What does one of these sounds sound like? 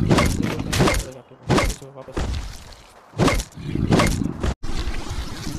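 A game character strikes an enemy with a weapon in repeated heavy blows.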